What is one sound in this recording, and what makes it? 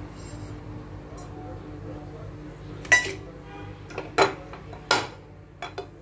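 Seeds sizzle and crackle in hot oil in a pan.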